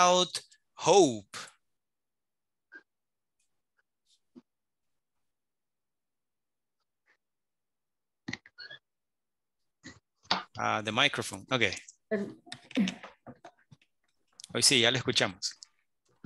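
An adult man speaks over an online call, in short bursts with pauses.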